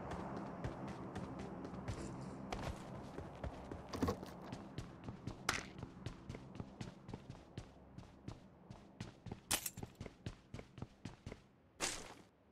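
Footsteps thud on floors in a quick, steady rhythm.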